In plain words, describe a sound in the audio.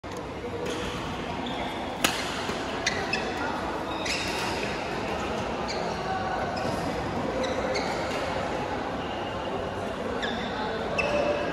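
Shoes squeak on the court floor.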